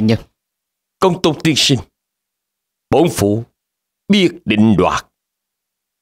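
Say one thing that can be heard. An older man speaks in a deep, stern voice, close by.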